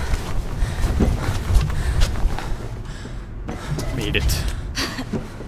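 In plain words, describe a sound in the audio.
Quick footsteps clang on a metal walkway.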